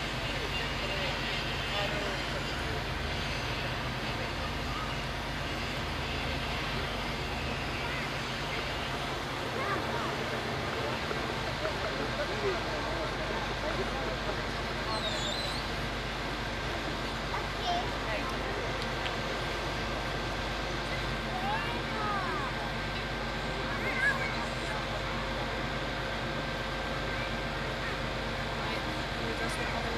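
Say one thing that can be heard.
A truck's engine hums steadily nearby.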